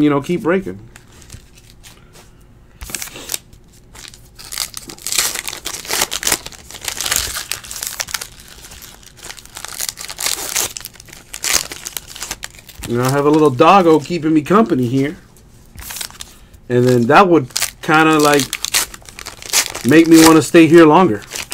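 Stiff cards flick and rustle as they are shuffled.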